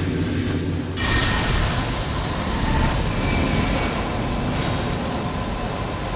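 A glowing blade swooshes and crackles with magic.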